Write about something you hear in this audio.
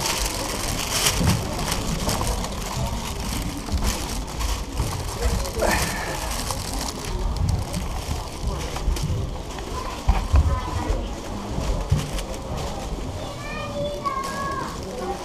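Footsteps thud on wooden stairs close by.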